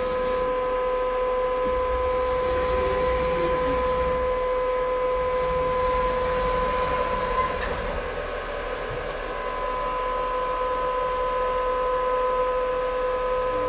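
A machine hums with a steady high whine.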